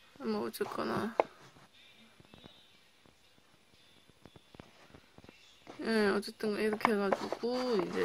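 A hand turns a paper cup with faint rustling.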